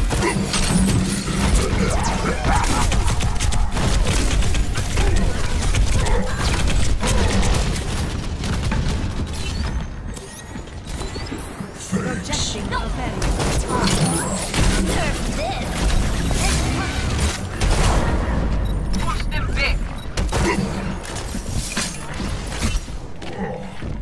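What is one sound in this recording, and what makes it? Gunfire and explosions from a video game crackle rapidly.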